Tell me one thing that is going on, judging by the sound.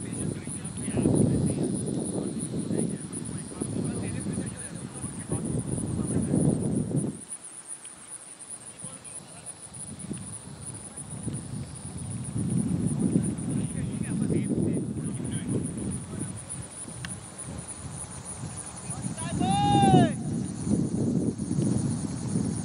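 Wind blusters against the microphone outdoors.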